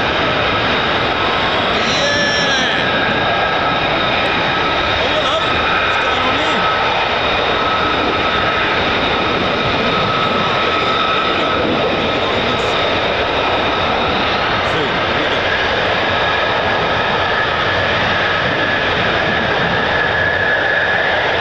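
A jet engine roars loudly and steadily, with a high whine.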